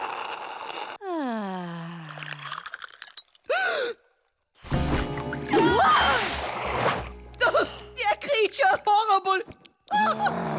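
A young woman speaks with animation in a drawling voice.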